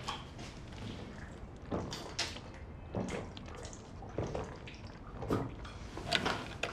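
A young man gulps down water in steady swallows, close by.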